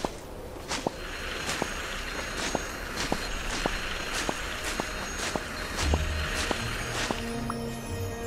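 A bright, shimmering magical sparkle swells and then fades.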